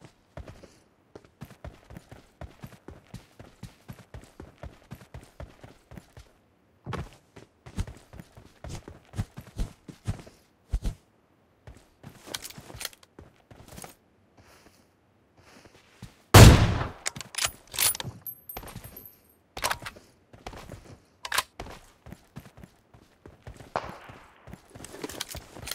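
Quick footsteps thud on grass and dirt.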